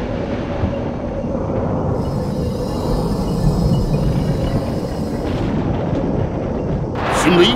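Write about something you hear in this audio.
A deep, steady rumbling roar rolls on.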